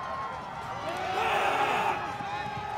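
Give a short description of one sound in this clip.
A crowd cheers as a play unfolds.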